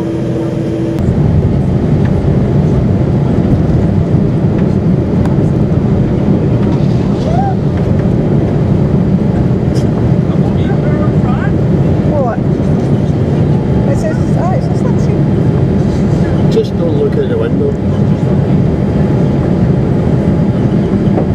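Jet engines roar loudly and steadily, heard from inside an airliner cabin.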